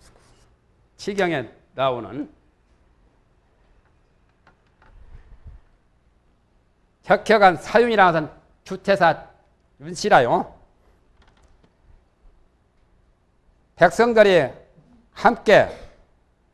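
An elderly man speaks slowly and calmly into a microphone, in short phrases with pauses.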